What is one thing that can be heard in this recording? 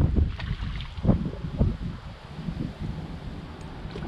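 A fishing reel clicks as its handle is wound.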